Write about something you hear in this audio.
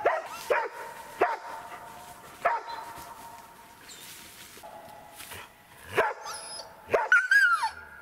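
Dogs bark sharply and excitedly outdoors.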